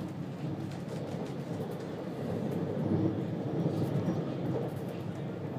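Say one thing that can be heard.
Another train rushes past close by in the opposite direction.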